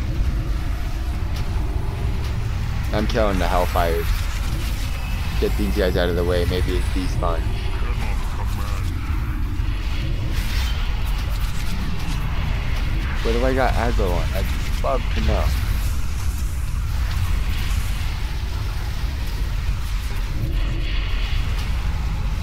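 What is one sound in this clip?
Spell effects and combat sounds of a fantasy game whoosh and crackle.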